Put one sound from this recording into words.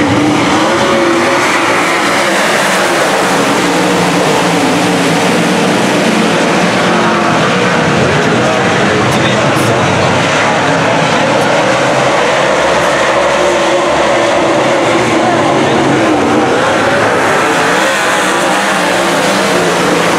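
Engines rise and fall in pitch as the cars pass close by.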